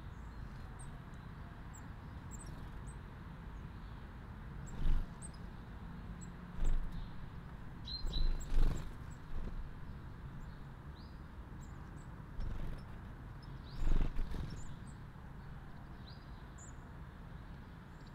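Rain patters steadily on leaves outdoors.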